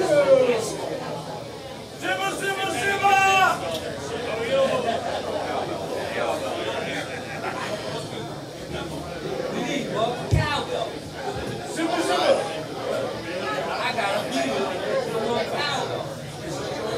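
Electric guitars play loudly through amplifiers.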